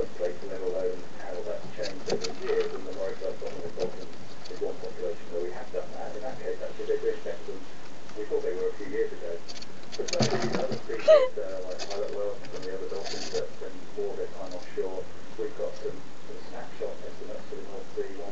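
A small rodent gnaws and scratches at cardboard.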